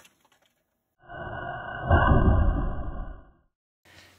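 A bottle bursts into flame with a short whoosh.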